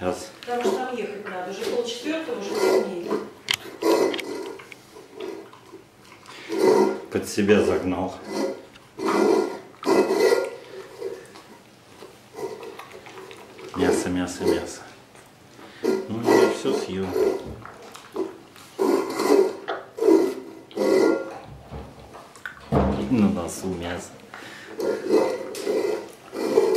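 A dog laps and chews food noisily from a metal bowl.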